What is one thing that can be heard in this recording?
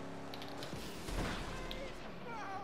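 A loud crash bangs as cars collide.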